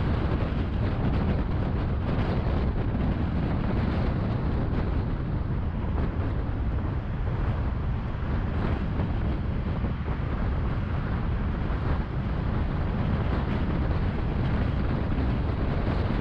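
Passing traffic rushes by on a busy road.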